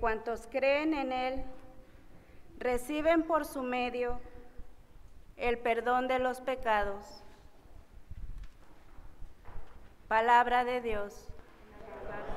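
A woman sings slowly into a microphone in an echoing room.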